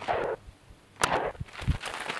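A pistol shot cracks outdoors.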